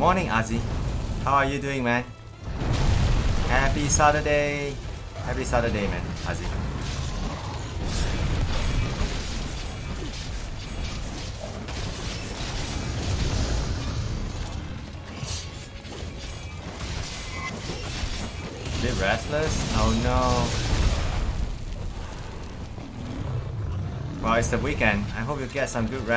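Fiery explosions boom and crackle again and again.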